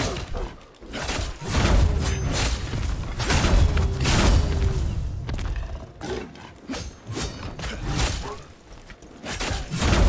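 An axe strikes flesh with heavy, wet blows.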